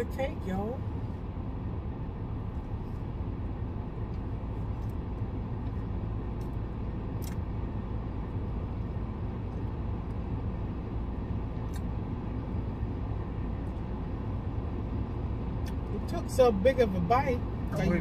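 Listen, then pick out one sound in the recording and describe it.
A low steady engine hum fills the inside of a car.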